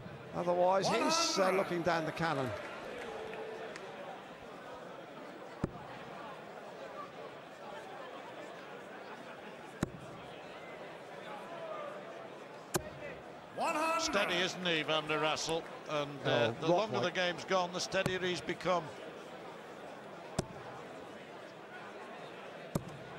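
A large crowd murmurs in the background.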